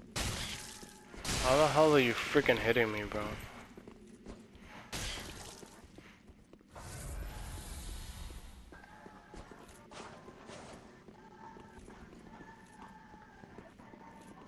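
Swords clash and slash in quick bursts.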